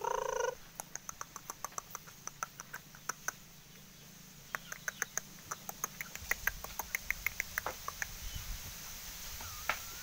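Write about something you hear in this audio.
Chickens cluck nearby.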